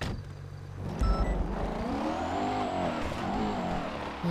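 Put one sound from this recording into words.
A car engine revs and roars as a car drives off.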